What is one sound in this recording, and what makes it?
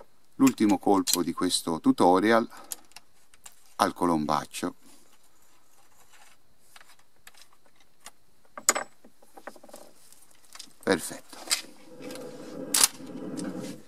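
A shotgun's action clicks and clacks as it is loaded.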